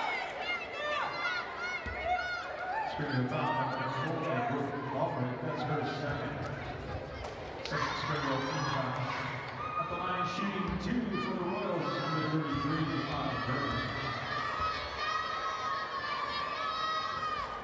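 A crowd of spectators murmurs and calls out in an echoing gym.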